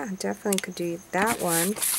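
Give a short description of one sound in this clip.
A brush brushes lightly over paper.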